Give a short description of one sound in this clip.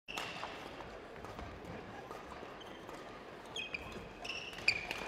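Sports shoes squeak sharply on a hard indoor court floor.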